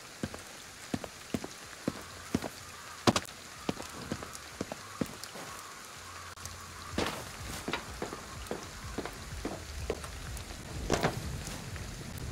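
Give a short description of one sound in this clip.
Footsteps thud quickly on a hard surface.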